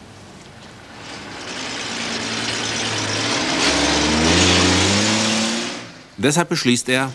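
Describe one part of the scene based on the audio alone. A heavy truck engine rumbles loudly as the truck drives past.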